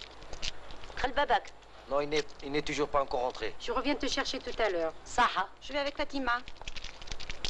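A woman speaks with feeling nearby.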